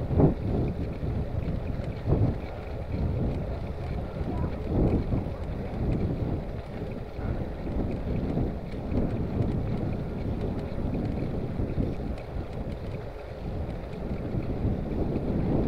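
Wind rumbles steadily across a moving bicycle.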